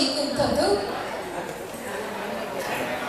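A young woman speaks through a microphone and loudspeakers in a large echoing hall.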